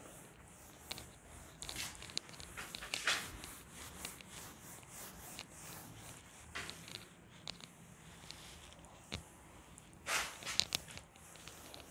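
A duster rubs softly across a whiteboard.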